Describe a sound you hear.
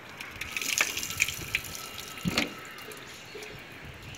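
Water splashes onto a concrete floor.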